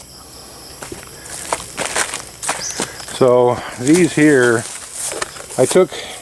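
Leaves rustle as something brushes through a plant.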